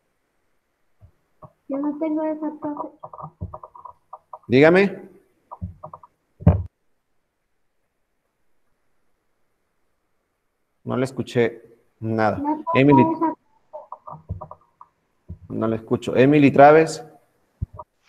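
A young man speaks calmly over an online call.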